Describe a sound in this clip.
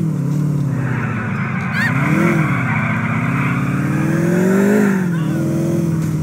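Car tyres squeal on the road during a turn.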